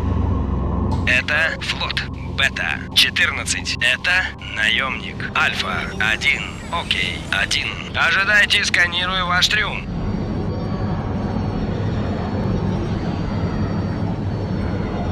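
A warp tunnel roars and whooshes.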